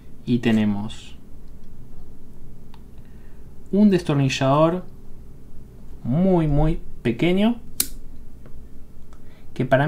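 A metal multitool clicks as its parts fold open.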